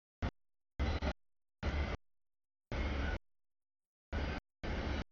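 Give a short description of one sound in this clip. A freight train rumbles past a crossing.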